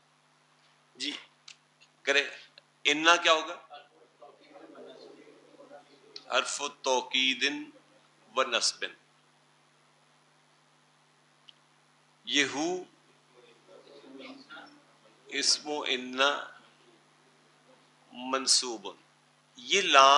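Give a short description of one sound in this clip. An elderly man speaks calmly into a clip-on microphone, pausing between phrases.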